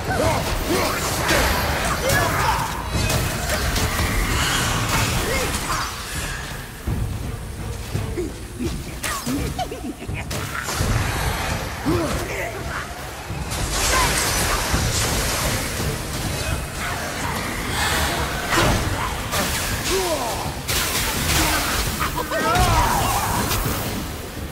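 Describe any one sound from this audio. Glowing creatures screech and wail.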